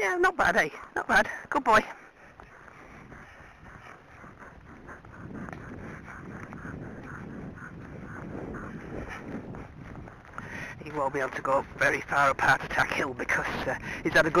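A horse's hooves thud steadily on grass.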